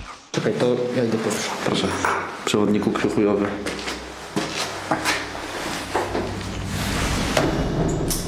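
Footsteps thud on a hard floor.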